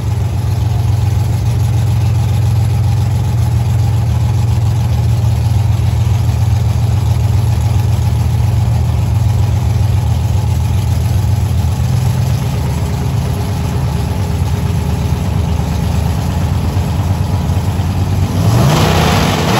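A car engine roars loudly and steadily.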